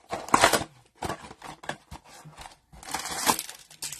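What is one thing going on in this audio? A cardboard flap scrapes open.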